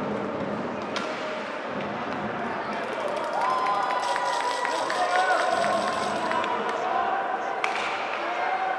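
A hockey stick slaps a puck.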